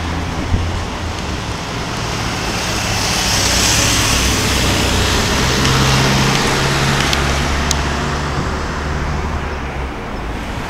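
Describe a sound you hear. Traffic hums and rushes by along a road.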